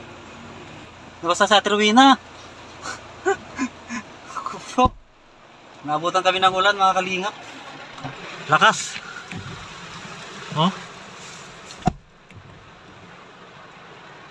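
Heavy rain patters on a car's windows.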